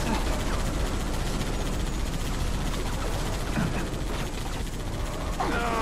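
A mounted machine gun fires in rapid bursts.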